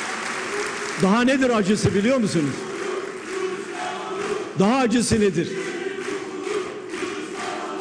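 An elderly man speaks forcefully through a microphone in a large echoing hall.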